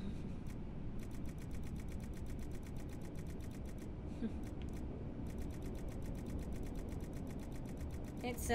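Soft menu ticks click quickly one after another.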